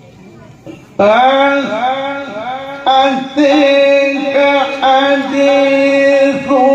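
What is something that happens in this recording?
An elderly man sings loudly into a microphone, heard through a loudspeaker.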